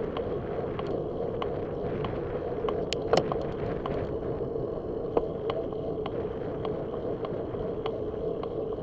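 A bicycle rattles and clicks sharply over small bumps in the road.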